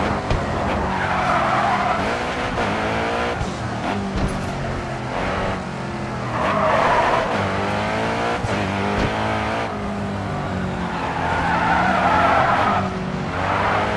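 Tyres screech as a car slides through corners.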